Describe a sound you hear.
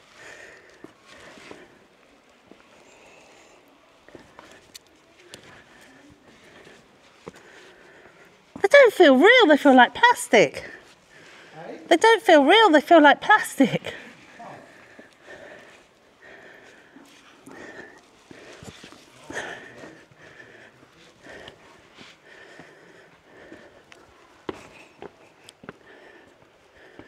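Footsteps scuff softly on rock.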